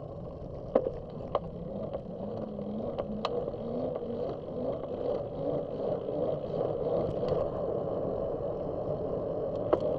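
Wind rushes steadily past a moving vehicle.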